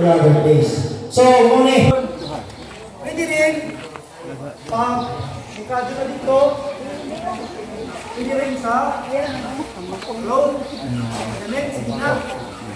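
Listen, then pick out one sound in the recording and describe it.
A man speaks loudly through a loudspeaker to an outdoor crowd.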